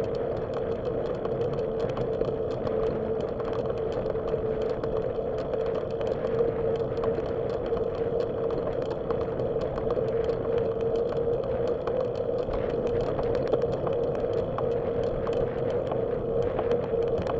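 A bicycle rattles and clicks over small bumps.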